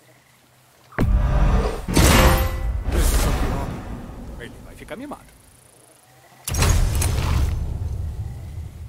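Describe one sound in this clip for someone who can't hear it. A loud shimmering whoosh sounds as an item is crafted in a game.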